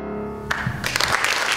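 A piano chord rings out and fades.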